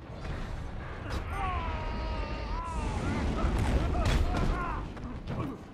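A fiery explosion roars and rumbles.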